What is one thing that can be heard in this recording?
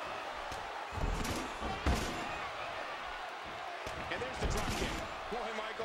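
Heavy thuds sound as wrestlers slam onto a ring mat.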